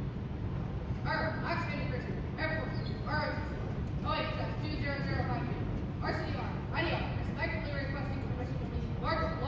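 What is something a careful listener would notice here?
A young man speaks loudly and formally to another in an echoing hall.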